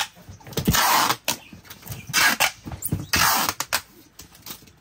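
Packing tape rips loudly off a cardboard box.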